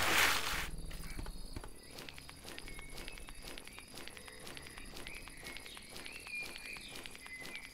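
Quick, light footsteps patter steadily on the ground.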